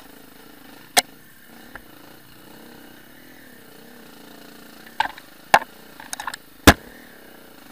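A motorbike knocks and clatters sharply over bumps in the trail.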